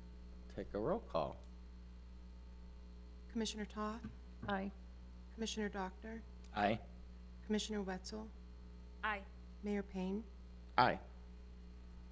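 A man speaks calmly in pauses through a microphone.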